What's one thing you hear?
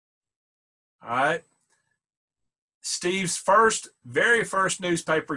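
A man speaks loudly and with animation over an online call.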